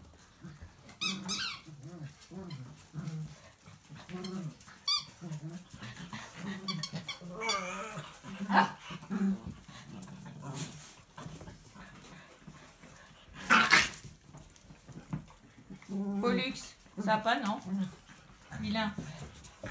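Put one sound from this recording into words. Dog claws click on a tiled floor.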